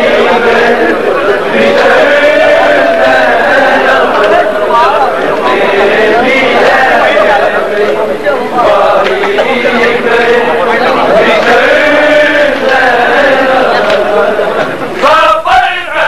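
A large crowd of men chants loudly together.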